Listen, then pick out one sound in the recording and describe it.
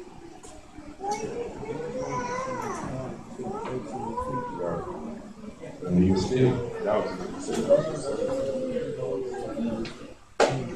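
A man speaks into a microphone, heard through loudspeakers in a room.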